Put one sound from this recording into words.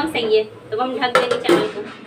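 A metal lid clanks on a pot.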